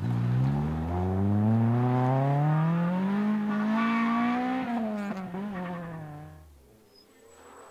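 A rally car engine roars loudly, revving higher as the car speeds away and fades.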